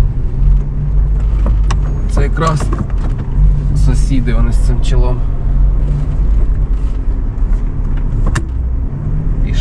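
A car engine hums steadily at low speed.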